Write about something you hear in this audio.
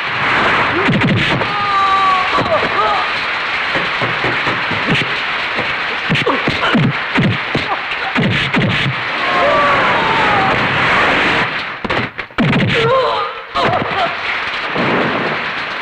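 Men grunt and shout as they fight.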